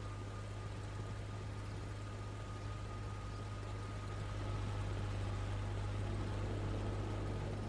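A tank engine rumbles low and steadily as the tank drives along.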